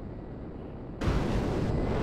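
A jet engine suddenly surges louder.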